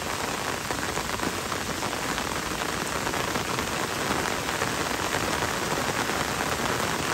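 Steady rain falls on leaves and a paved road.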